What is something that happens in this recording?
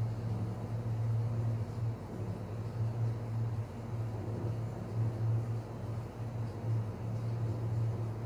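Thick batter pours and spreads onto a metal plate.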